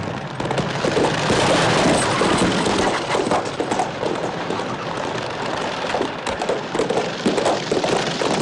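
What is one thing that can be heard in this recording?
Horse hooves clop on the road.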